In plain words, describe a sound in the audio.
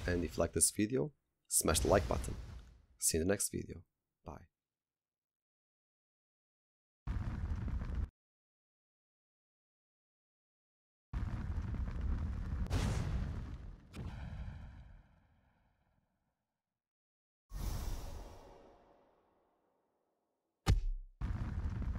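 A magic spell whooshes and shimmers.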